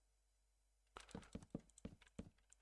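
A wooden block breaks with a short crunch.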